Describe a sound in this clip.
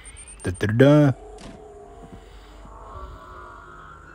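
A heavy vault door slides open with a whoosh.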